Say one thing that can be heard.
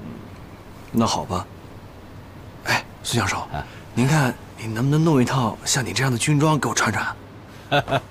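A young man speaks in a cheerful, lively voice.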